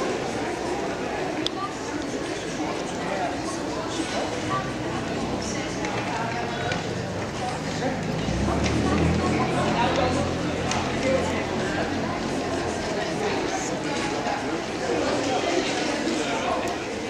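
Footsteps of passers-by tap on a paved street.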